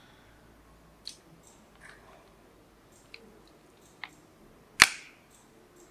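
Small pliers click against metal parts.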